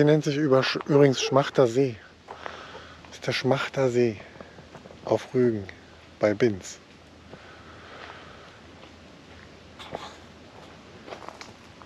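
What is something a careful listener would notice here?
Wind rustles through tall grass and leaves outdoors.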